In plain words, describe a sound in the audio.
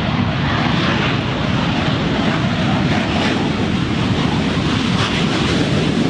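Tyres rumble along a runway.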